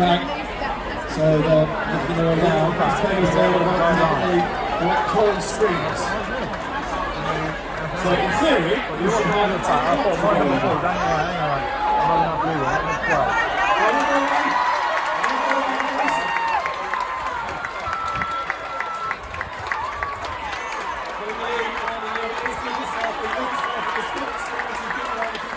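A crowd of spectators chatters close by outdoors.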